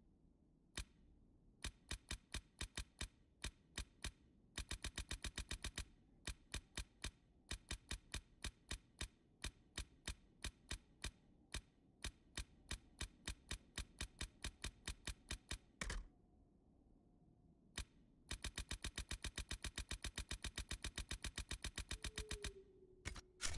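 Menu clicks tick rapidly, one after another.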